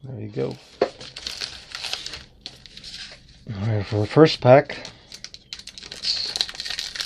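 A foil wrapper crinkles as hands handle it.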